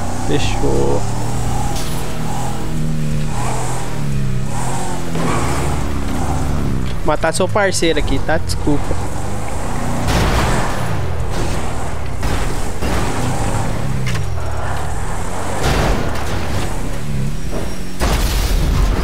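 A car engine revs and roars steadily.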